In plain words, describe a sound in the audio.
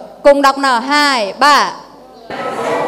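A woman speaks animatedly through a microphone.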